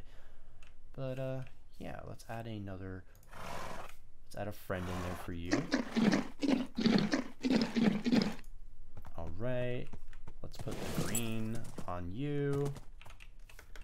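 A horse whinnies and snorts.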